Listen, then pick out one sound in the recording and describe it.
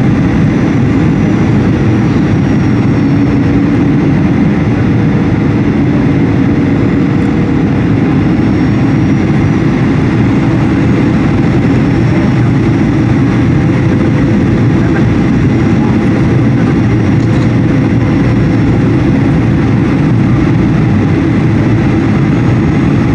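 A jet engine roars loudly and steadily from inside an airliner cabin.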